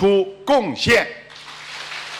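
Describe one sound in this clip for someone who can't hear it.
An elderly man speaks calmly into a microphone, heard through loudspeakers.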